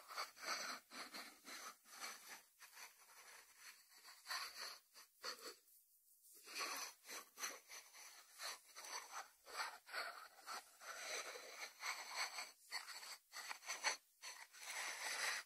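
A ceramic dish slides across a wooden board.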